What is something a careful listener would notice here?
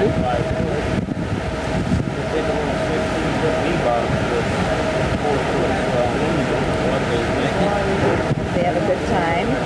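Water rushes and splashes in a boat's wake below.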